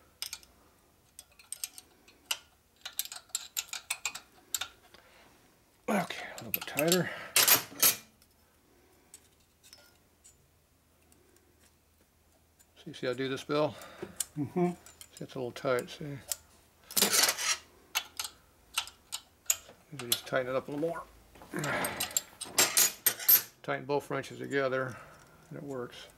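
Small metal parts click and tap against an engine.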